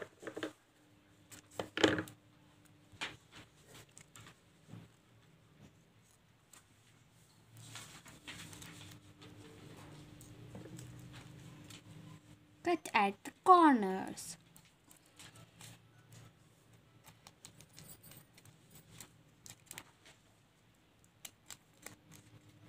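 Plastic film crinkles and rustles as it is handled.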